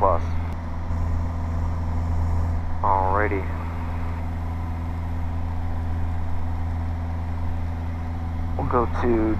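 A propeller plane engine drones loudly and steadily up close.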